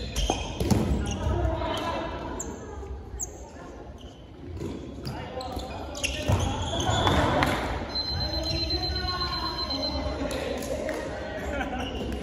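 Several young men call out to each other during a game.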